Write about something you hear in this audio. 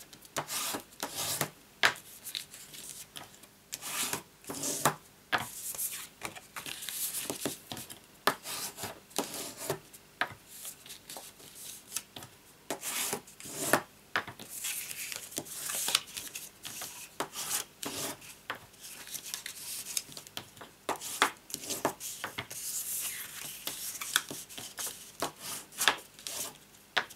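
Stiff cardstock rustles and crackles as it is folded by hand.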